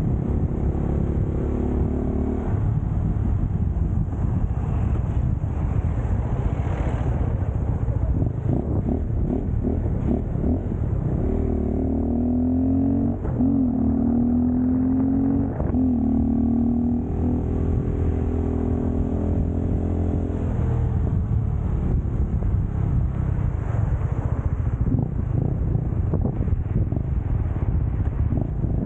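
A motorcycle engine hums and revs as the bike rides along.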